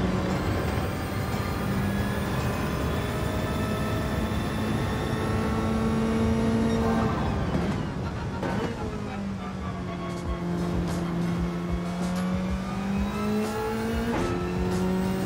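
A racing car engine roars at high revs, climbing in pitch through each gear and dropping sharply on downshifts.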